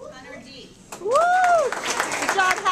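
A girl in the crowd shouts a high, rising whoop.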